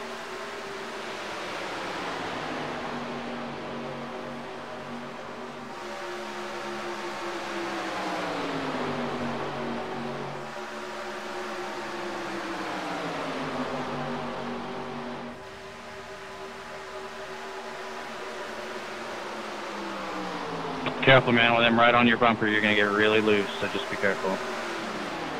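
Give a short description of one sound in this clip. Race car engines roar steadily, rising and falling in pitch as the cars pass.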